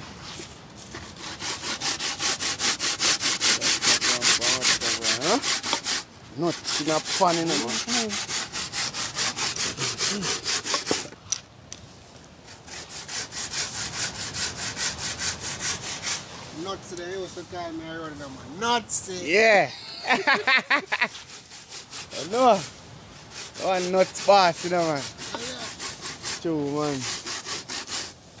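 A man grates coconut by hand, rasping rapidly against a metal grater.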